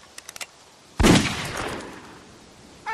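A rifle shot cracks and echoes away.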